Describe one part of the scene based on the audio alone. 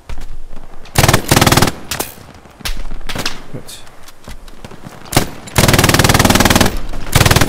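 A heavy machine gun fires rapid bursts close by.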